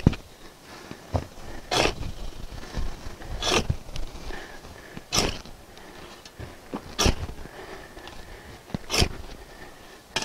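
Soil thuds and scatters as it is thrown into a hole.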